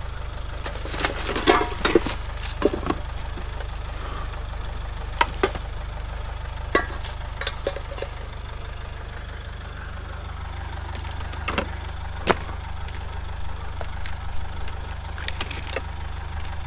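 Plastic items clatter and knock as they are handled.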